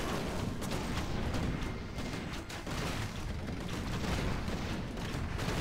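Magic spells burst and crackle.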